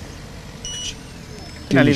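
A parking machine beeps briefly.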